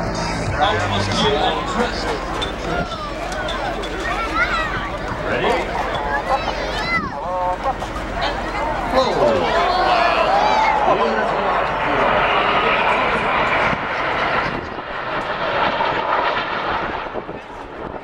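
Jet planes roar overhead.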